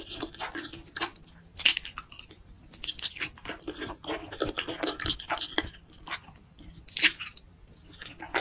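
A woman slurps noodles loudly, close to the microphone.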